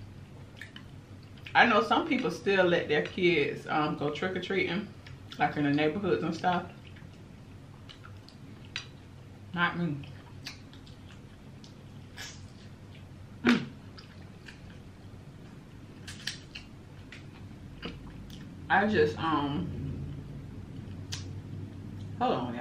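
A young woman chews food with soft, wet smacking sounds.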